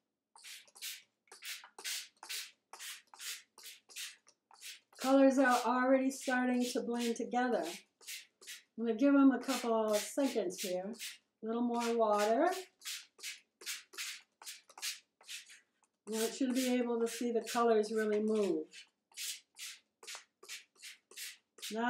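A spray bottle hisses in quick, repeated short bursts.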